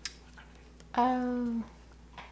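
A man hums briefly with his mouth closed.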